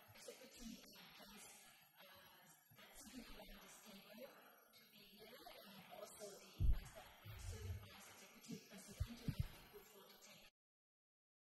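A woman reads out through a microphone in a large room.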